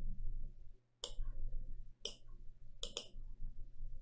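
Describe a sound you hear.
Soft clicks sound as items are picked up and placed.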